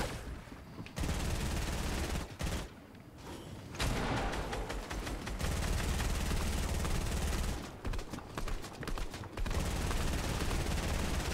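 Wooden walls clatter and thud as they are built quickly.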